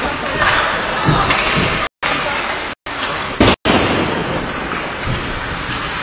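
Ice skates scrape and swish across ice in an echoing indoor rink.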